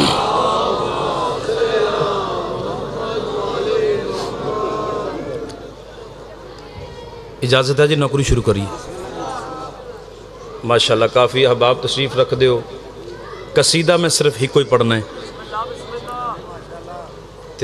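A man speaks forcefully into a microphone through loudspeakers, in an echoing hall.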